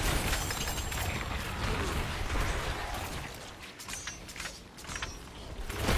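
Game combat effects crash and clang as enemies are struck.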